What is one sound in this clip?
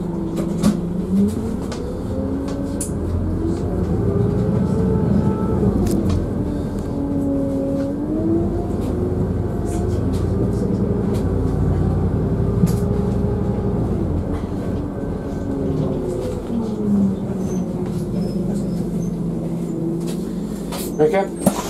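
A bus engine rumbles and whines, rising and falling in pitch as the bus drives off down the street.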